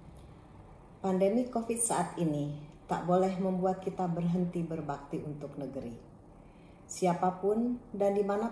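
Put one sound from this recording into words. A middle-aged woman speaks calmly and steadily.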